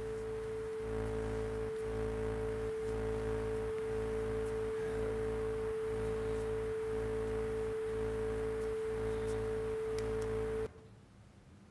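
A television gives off a loud, steady tone that pulses in a regular beat, then cuts off.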